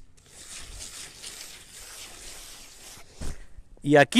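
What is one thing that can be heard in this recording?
A trowel scrapes across wet concrete.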